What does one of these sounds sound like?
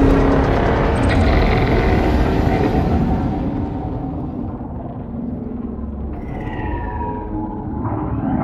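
A spaceship engine rumbles with a deep, steady hum.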